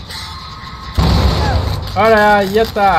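A generator bursts with a bang and a crackle of sparks.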